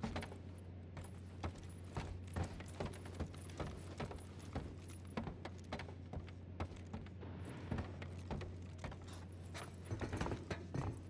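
Footsteps thud on a hollow metal floor.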